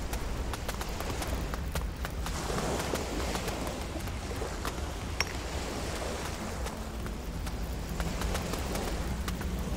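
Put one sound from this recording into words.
Footsteps run on stone.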